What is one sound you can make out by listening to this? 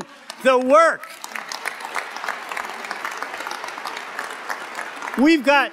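A crowd applauds in a large echoing hall.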